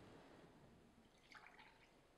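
Juice pours into a glass.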